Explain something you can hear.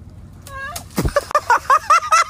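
Water splashes as a person drops into shallow water.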